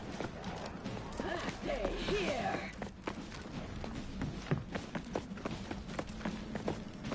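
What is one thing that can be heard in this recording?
Footsteps tread steadily on stone and gravel.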